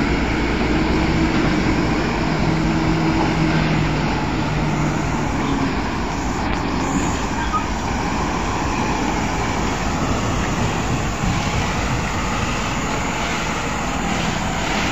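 A heavy truck engine rumbles close by.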